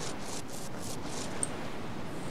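Clothing and gear rustle in short, even bursts as someone crawls over the ground.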